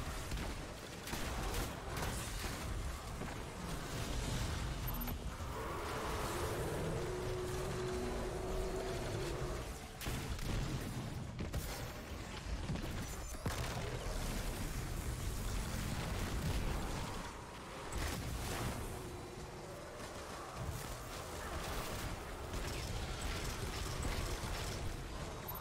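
Rapid gunfire blasts and crackles.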